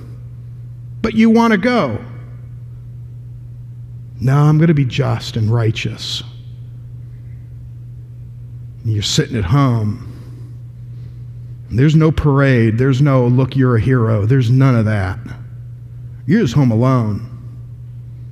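A man speaks calmly through a microphone in a large room, pausing between phrases.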